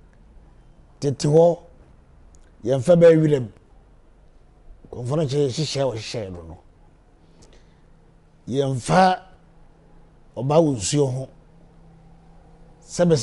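An elderly man speaks with animation in short bursts, close to a microphone.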